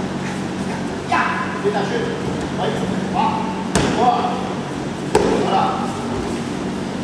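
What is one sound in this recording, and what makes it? Children's voices call out nearby in a large hall.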